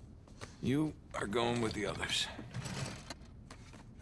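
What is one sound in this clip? A metal drawer slides open.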